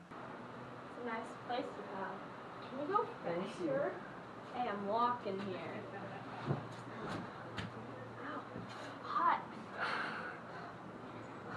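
Young girls talk and call out excitedly nearby, outdoors.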